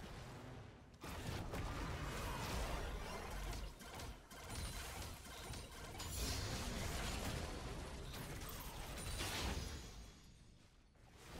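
Video game spells and fighting effects crackle and whoosh.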